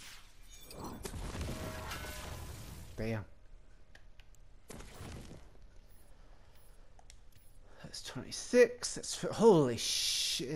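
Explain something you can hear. Game menu sounds chime and click as options are selected.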